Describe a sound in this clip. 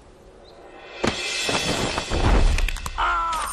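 A sudden scuffle of bodies and clothing bursts out loudly.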